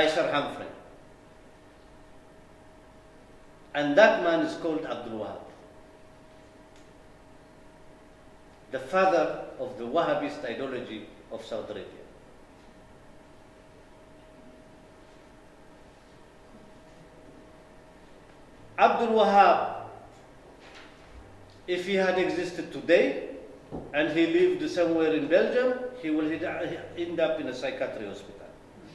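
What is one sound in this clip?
A middle-aged man speaks calmly into a microphone in bursts, with pauses between.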